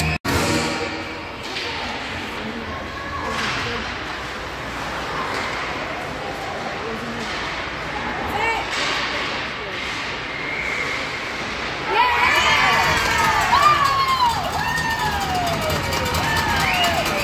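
Skates scrape and hiss across the ice in an echoing rink.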